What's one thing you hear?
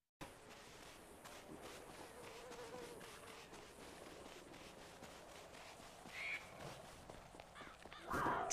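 Footsteps run quickly over dry dirt.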